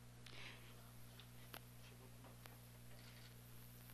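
A crowd of people murmurs quietly in a room.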